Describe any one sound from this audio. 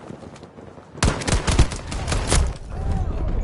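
An automatic rifle fires a rapid burst of gunshots.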